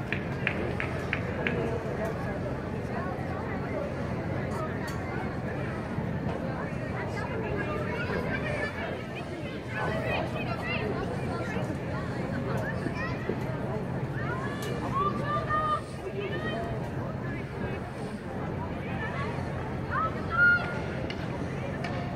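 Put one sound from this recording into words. Women hockey players shout to each other across the pitch.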